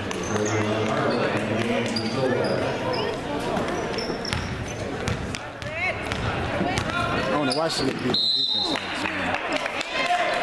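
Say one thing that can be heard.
A crowd of spectators cheers and calls out in a large echoing hall.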